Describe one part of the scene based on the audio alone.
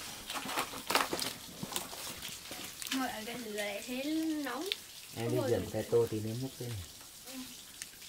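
A wood fire crackles.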